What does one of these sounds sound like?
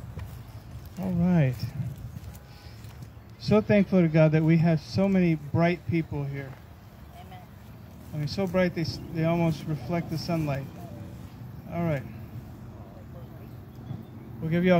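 A man speaks calmly into a microphone outdoors.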